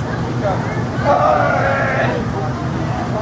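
A boy calls out excitedly to a dog.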